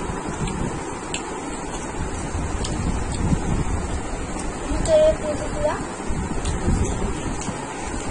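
Crispy fried chicken crackles as fingers tear it apart.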